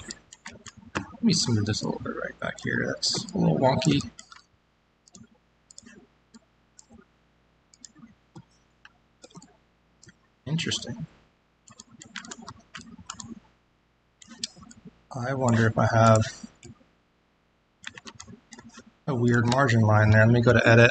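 A man speaks calmly through a microphone, as on an online call.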